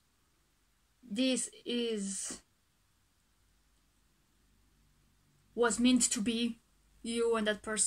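A young woman speaks calmly and closely into a microphone, in short bursts with pauses.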